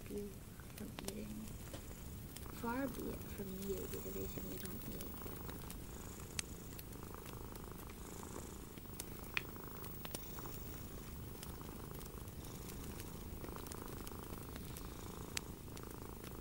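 Long fingernails tap and click together close to a microphone.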